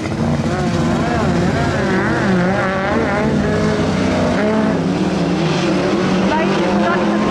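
Racing car engines roar loudly and rev up and down as they pass.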